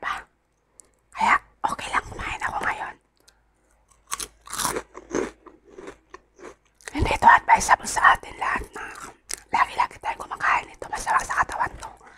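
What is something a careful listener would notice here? A snack bag crinkles and rustles.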